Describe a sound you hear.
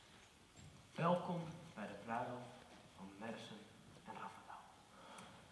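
A young man speaks calmly on a stage, heard from a distance.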